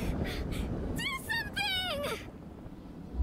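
A young woman shouts in panic.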